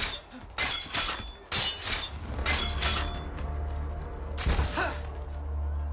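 Blades clash and strike in a close fight.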